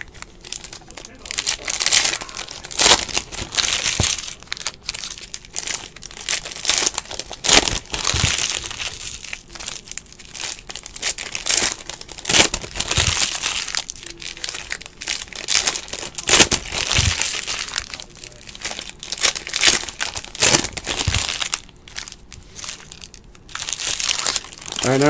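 Foil card wrappers crinkle and tear as hands open packs.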